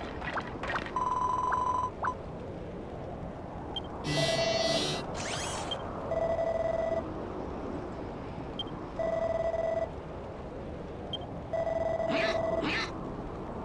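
Game dialogue beeps sound in short bursts.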